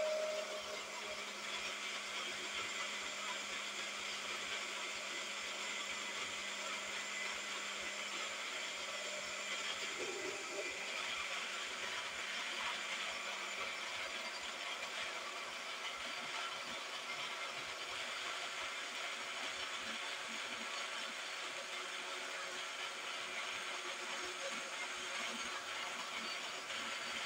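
A blender motor whirs steadily.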